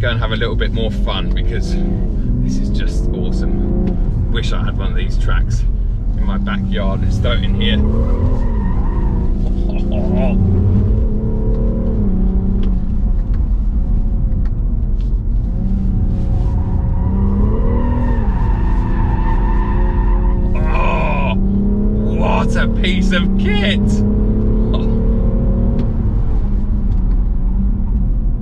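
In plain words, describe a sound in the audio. A car engine hums and revs up and down throughout.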